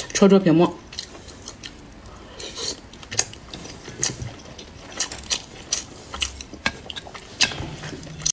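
A young woman chews food loudly and wetly close to a microphone.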